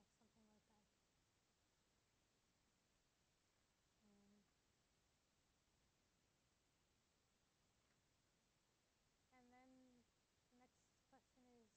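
A woman speaks calmly in short phrases.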